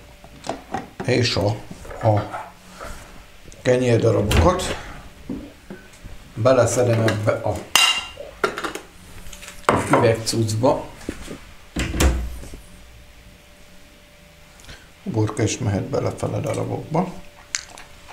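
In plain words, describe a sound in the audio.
A man talks calmly and explains, close by.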